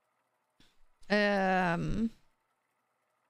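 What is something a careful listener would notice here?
A young woman makes a long, drawn-out vocal sound close to a microphone.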